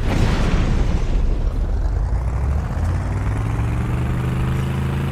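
A vehicle engine roars and hums steadily as it drives.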